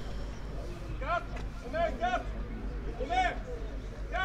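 Rugby players shout short calls across an open field.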